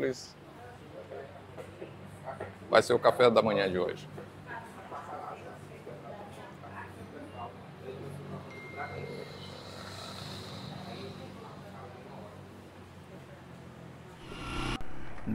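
Diners chatter quietly in the background.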